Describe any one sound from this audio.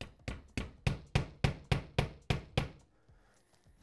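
A man knocks rapidly and sharply on a wall in a steady rhythm.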